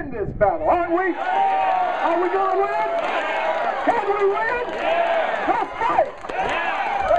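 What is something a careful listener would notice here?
A crowd of men and women chants and cheers.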